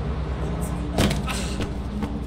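A heavy thud sounds as someone lands from a jump.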